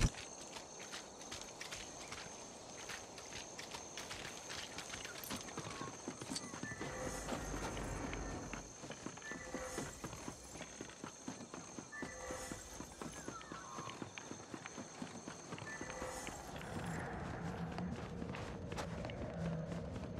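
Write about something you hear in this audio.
Soft footsteps patter steadily on the ground.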